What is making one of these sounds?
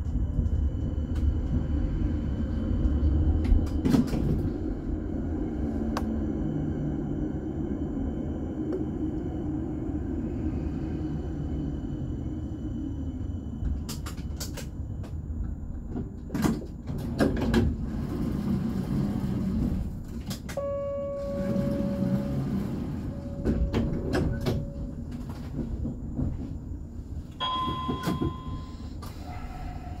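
Wind blows outdoors, rumbling steadily.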